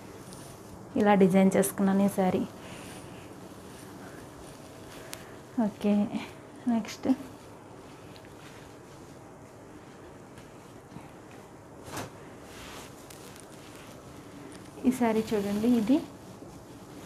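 A woman speaks close by in short bursts.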